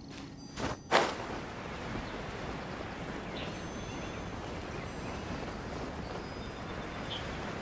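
Wind rushes past while gliding through the air.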